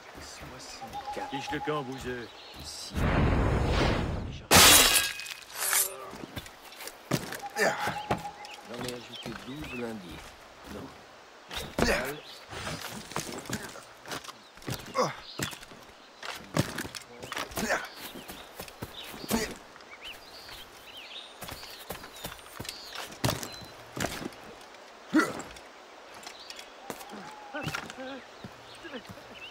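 Footsteps thud on wooden planks and rustle through grass.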